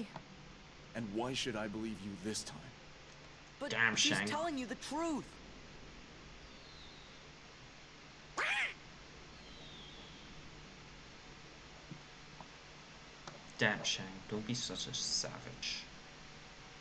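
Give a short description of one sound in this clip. A man speaks sternly.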